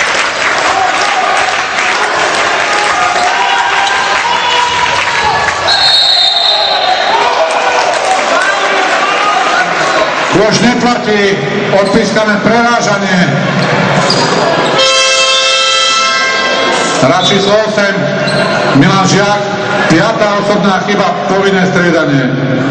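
A crowd of spectators chants and cheers in an echoing hall.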